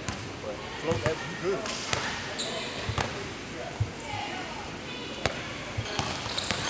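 A basketball bounces with dull thuds.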